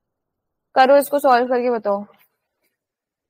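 A young woman speaks briefly over a microphone.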